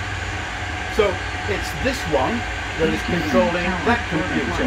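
A young man speaks with animation close by.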